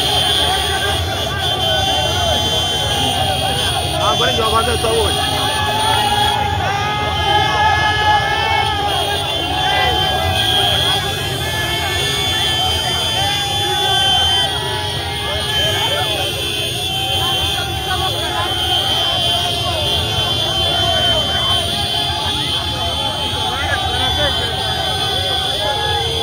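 Motorcycle engines idle and rev.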